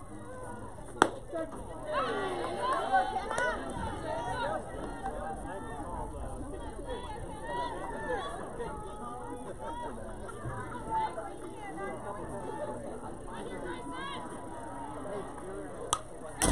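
A ball smacks sharply into a catcher's mitt.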